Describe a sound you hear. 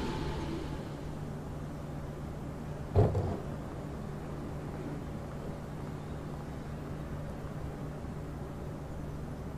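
A train's engine hums steadily while it stands still.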